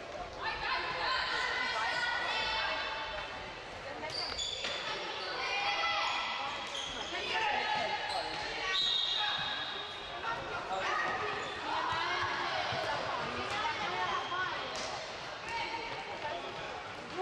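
Sneakers squeak on a hard floor in an echoing hall.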